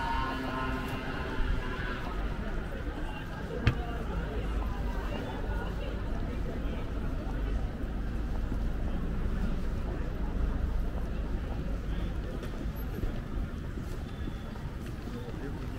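Footsteps tap on the pavement.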